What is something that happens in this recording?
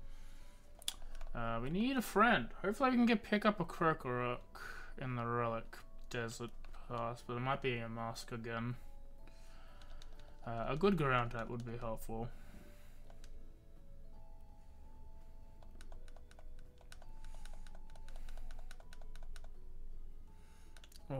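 Soft electronic game music plays.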